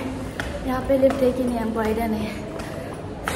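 A young woman talks close up in a bright, playful voice.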